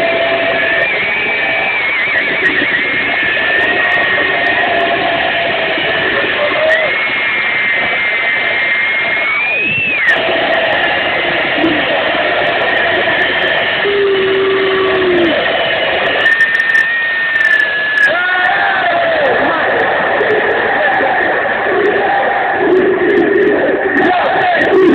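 A large stadium crowd chants and sings loudly outdoors.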